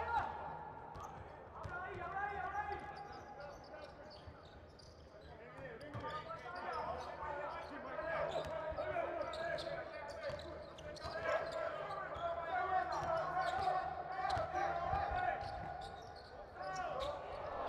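Sneakers squeak on a hardwood court.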